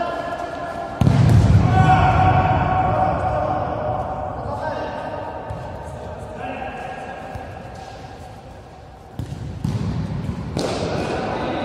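A ball is kicked with sharp thuds in an echoing hall.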